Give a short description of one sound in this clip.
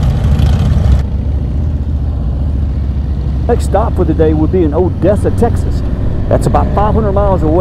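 A Harley-Davidson V-twin touring motorcycle cruises along a road.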